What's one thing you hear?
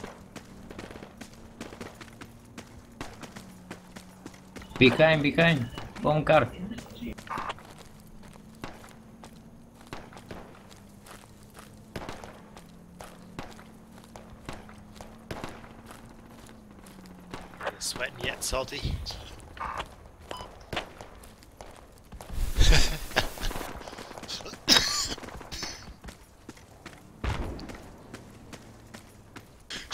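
Footsteps crunch steadily on dry grass and dirt.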